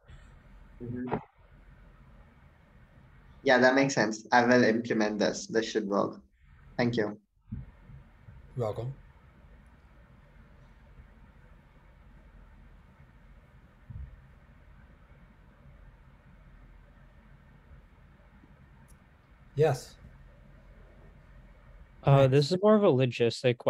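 A young man speaks calmly into a microphone, pausing between phrases.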